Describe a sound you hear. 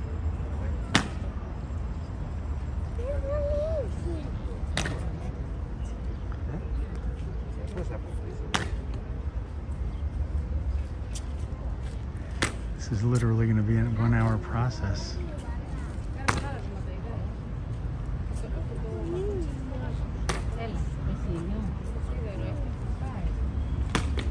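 Hobnailed shoes stamp on stone paving in slow, regular, sharp knocks.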